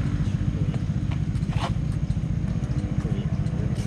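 Footsteps scuff on asphalt nearby.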